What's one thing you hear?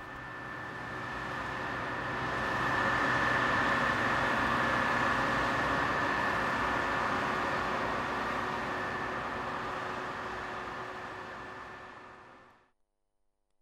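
Combine harvesters rumble steadily as they cut through a field.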